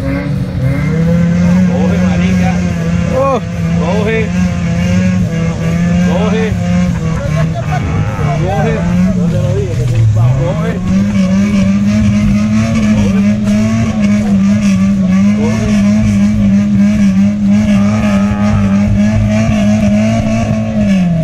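A motorcycle engine drones steadily close by, dipping briefly in pitch before rising again.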